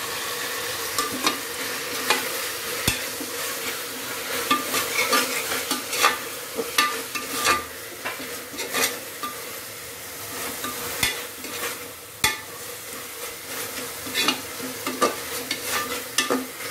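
A metal ladle scrapes and clinks against a metal pot while stirring.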